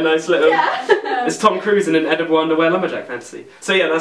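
Young people laugh together.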